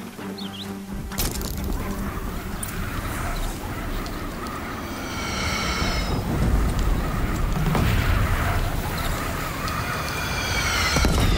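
A pulley hisses and whirs along a cable as a climber slides down.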